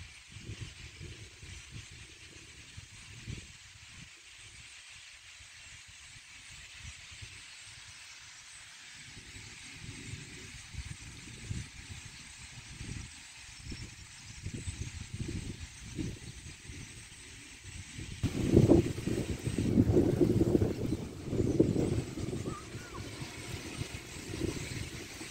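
A large flock of birds chirps and calls overhead.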